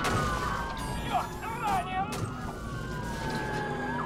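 A truck crashes into a police car with a loud bang.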